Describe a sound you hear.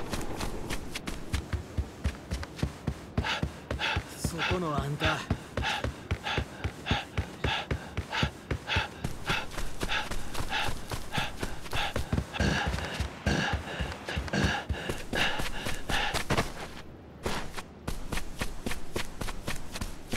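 Quick running footsteps thud across wooden boards and packed ground.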